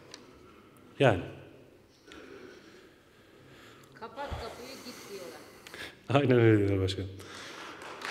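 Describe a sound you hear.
A man speaks loudly into a microphone in a large echoing hall.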